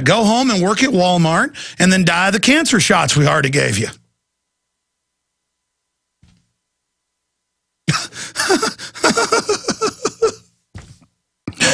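A middle-aged man speaks forcefully into a close microphone, with pauses.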